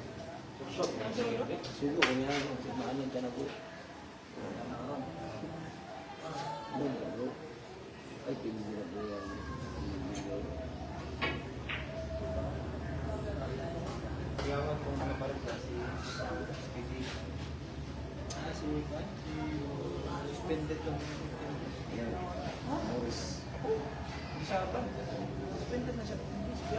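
A crowd of men and women chatters throughout.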